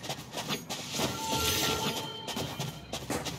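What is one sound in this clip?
A magical ability charges up with a shimmering hum.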